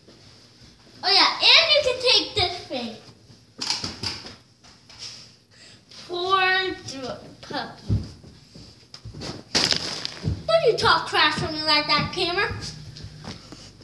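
A young girl sings loudly close by.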